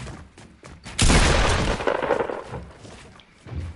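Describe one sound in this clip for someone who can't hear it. A structure breaks apart with a loud crash.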